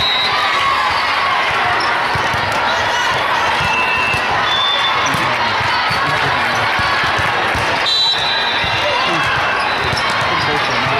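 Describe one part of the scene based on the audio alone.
A crowd chatters and cheers, echoing through a large indoor hall.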